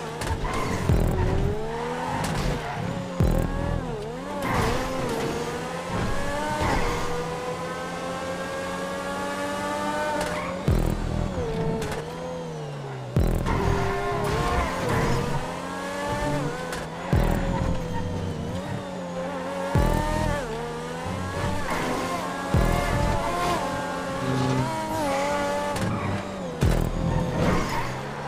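A racing car engine revs hard, climbing in pitch through each gear and dropping at every shift.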